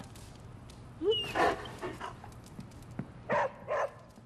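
A dog barks a few times.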